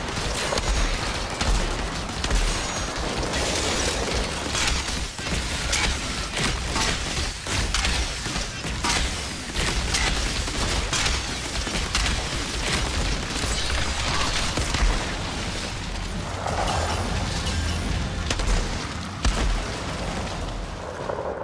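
Guns fire in rapid bursts with loud bangs.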